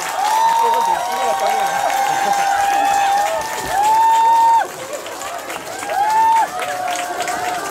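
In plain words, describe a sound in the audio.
Young men sing together in harmony through microphones and loudspeakers outdoors, holding long high notes.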